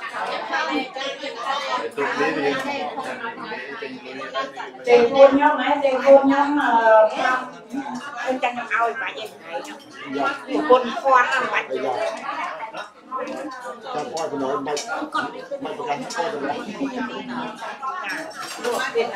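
A crowd of men and women chatter and murmur nearby.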